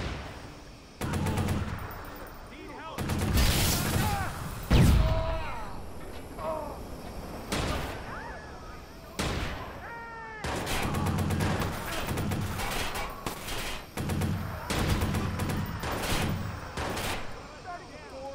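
An assault rifle fires in bursts.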